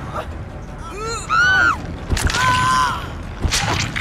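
A woman screams in terror.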